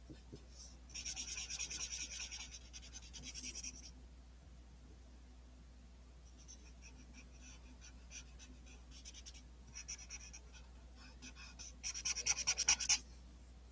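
A marker scratches quickly back and forth across paper.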